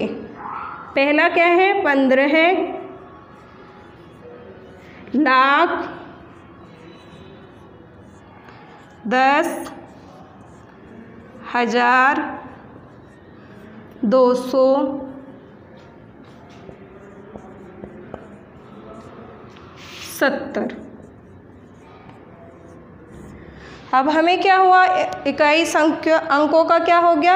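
A woman speaks in short, clear phrases close by, pausing between them.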